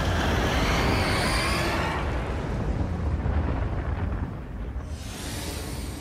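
Strong wind blows and gusts outdoors.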